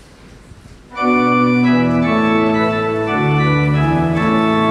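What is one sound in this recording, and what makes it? An organ plays loud sustained chords.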